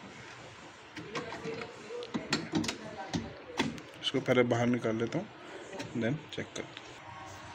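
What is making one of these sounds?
Plastic parts click and knock as a hand works a small mechanism.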